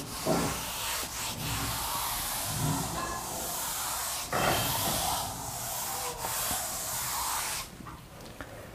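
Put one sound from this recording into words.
A board eraser rubs across a chalkboard with a soft scraping hiss.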